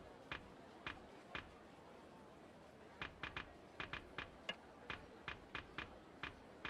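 Short, crisp menu blips tick again and again as a selection moves through a list.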